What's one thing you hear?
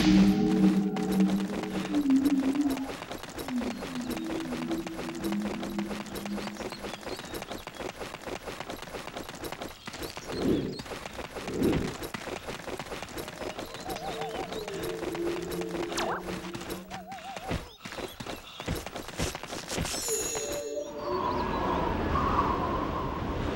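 Footsteps patter steadily on stone.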